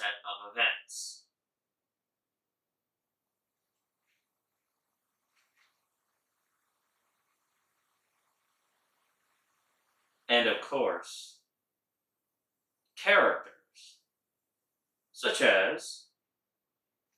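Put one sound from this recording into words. A man speaks in short bursts into a microphone, with long pauses between.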